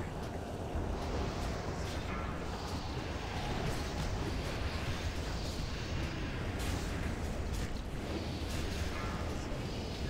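Magic spells crackle and burst in a busy fantasy battle.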